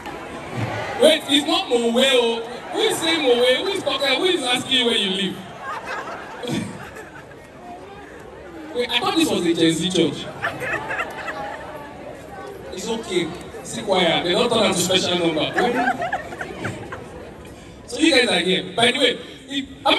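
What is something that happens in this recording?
A man speaks with animation into a microphone, heard through loudspeakers in a large hall.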